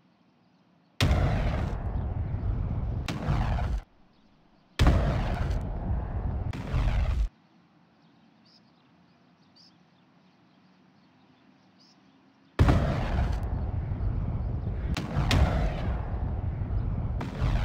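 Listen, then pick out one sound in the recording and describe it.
Gunfire rattles in long bursts.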